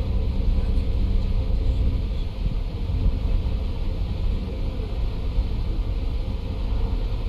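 Tyres roar on a motorway.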